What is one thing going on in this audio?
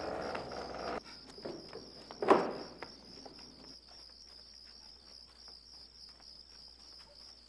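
Footsteps walk away on hard ground.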